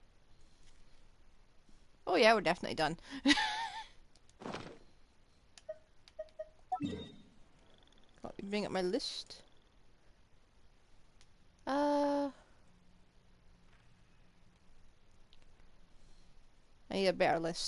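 Soft interface chimes sound as game menus open and close.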